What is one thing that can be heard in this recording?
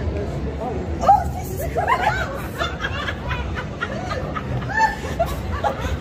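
A young woman shrieks and laughs nearby.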